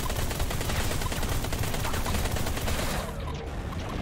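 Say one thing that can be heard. Rapid laser blasts fire in a steady stream.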